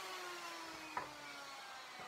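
A wooden board knocks once against a bench.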